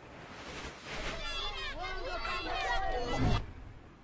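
Children shout and cheer.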